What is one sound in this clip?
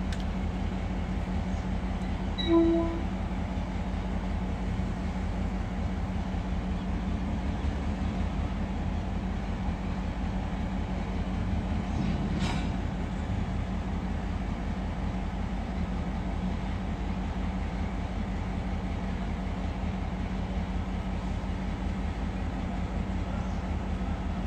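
Freight wagons rumble slowly along the rails with a steady low drone.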